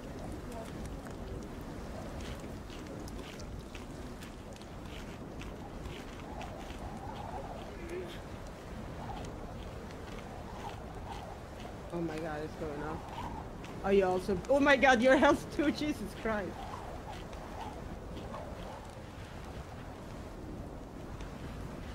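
A campfire crackles and hisses.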